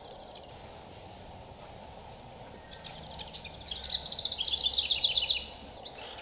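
A bumblebee buzzes around a flower.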